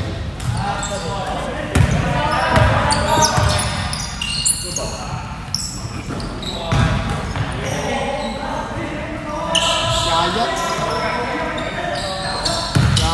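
Sneakers squeak on a wooden basketball court in a large echoing hall.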